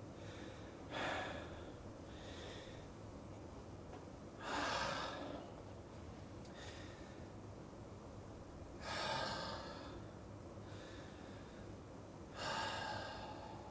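An elderly man speaks briefly and softly, with pauses.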